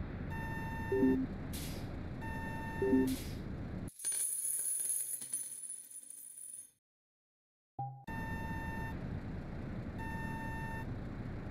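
A truck's reversing alarm beeps in short bursts.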